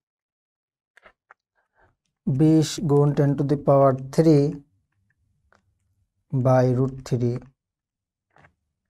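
Buttons click on a calculator.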